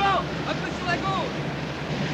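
Waves wash against the side of a ship.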